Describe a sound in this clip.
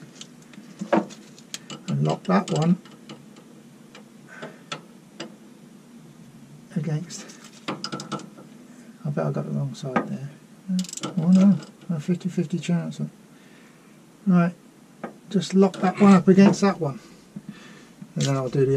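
Metal tools clink and scrape against a metal shaft.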